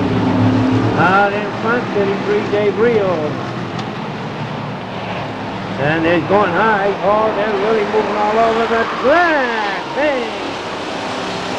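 Tyres squeal as cars slide and spin.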